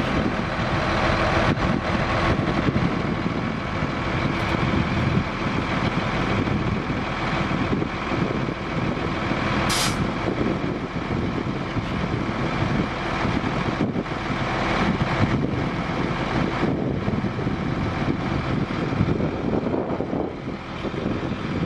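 A hydraulic truck bed whirs as it slowly tilts.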